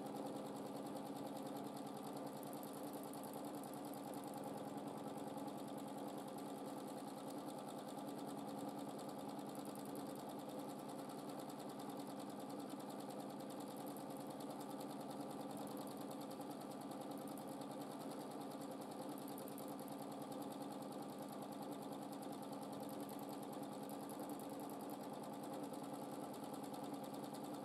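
A sewing machine stitches steadily with a fast, even whirring hum.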